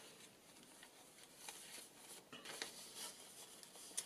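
Paper pages rustle and crinkle as they are turned.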